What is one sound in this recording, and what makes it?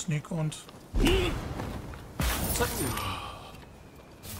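A sword slices into flesh with a wet, heavy strike.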